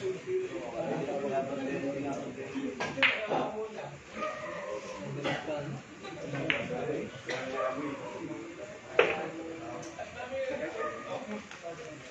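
Men chat quietly nearby.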